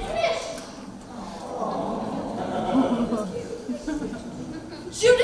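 Young voices sing together in a large hall.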